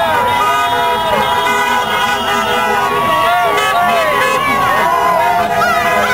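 A crowd of men and women cheers and shouts outdoors.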